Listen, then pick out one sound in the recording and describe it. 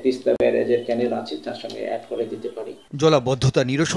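A middle-aged man speaks calmly into a microphone, close by.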